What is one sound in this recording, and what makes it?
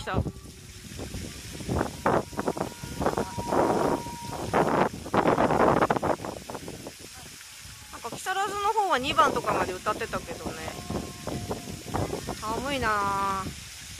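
Fountains splash and spray water steadily.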